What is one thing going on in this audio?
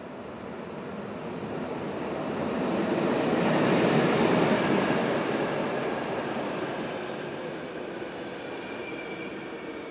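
A double-deck train rolls in along the track with a rising rumble.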